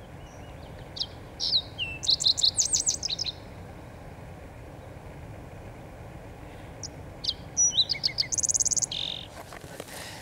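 A small bird sings bright, quick chirping phrases nearby.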